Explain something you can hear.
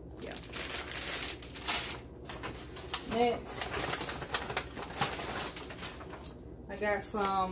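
Paper bags rustle as someone rummages through them.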